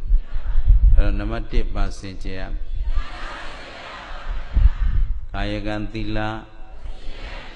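A man speaks calmly and cheerfully into a microphone, in bursts.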